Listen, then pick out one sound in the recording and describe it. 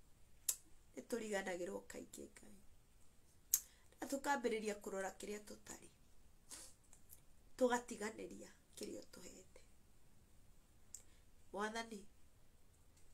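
A woman speaks emotionally and close up, in short bursts with pauses.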